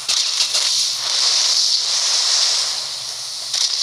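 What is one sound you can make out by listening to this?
A large wave splashes and crashes.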